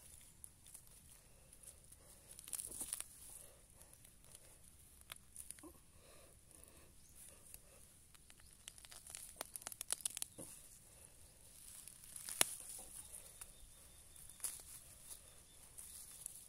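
Leaves and twigs rustle as a gloved hand brushes through them.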